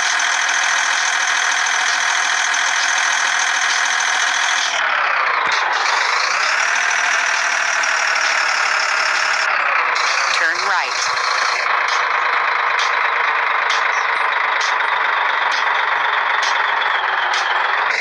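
A truck engine hums steadily and rises and falls in pitch as the truck drives.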